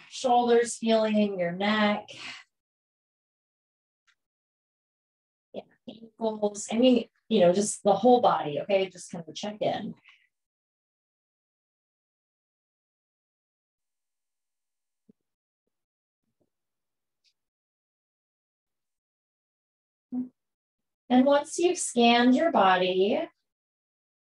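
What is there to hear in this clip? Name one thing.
A woman speaks calmly and softly, close to a microphone, with long pauses.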